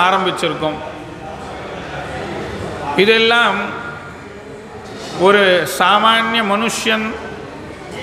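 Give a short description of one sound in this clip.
A man chants in a sustained singing voice through a microphone.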